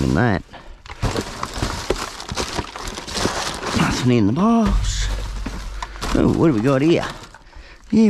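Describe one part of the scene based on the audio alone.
Plastic packaging crackles.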